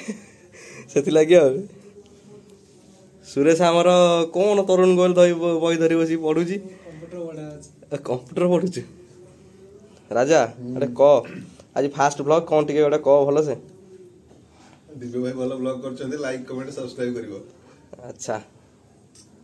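Young men talk with animation nearby.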